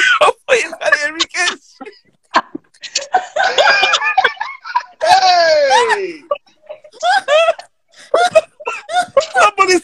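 A woman laughs loudly over an online call.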